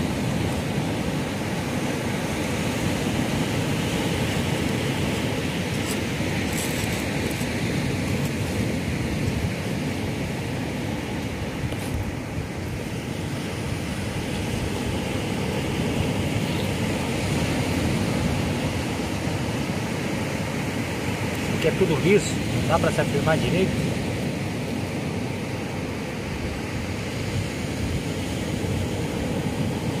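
A knife scrapes scales off a fish.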